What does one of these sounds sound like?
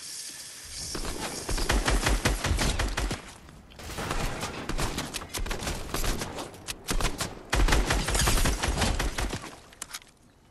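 Rapid gunfire bursts out in loud, quick volleys.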